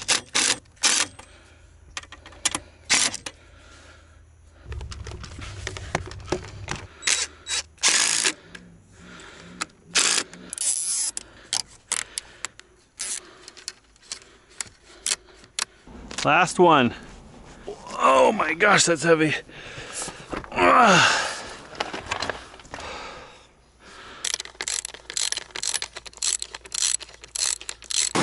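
Plastic pipe fittings click and rattle as hands fit them together.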